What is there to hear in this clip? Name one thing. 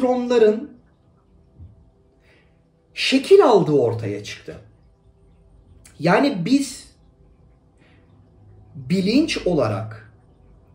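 A man speaks calmly and expressively close to a microphone, in short phrases with pauses.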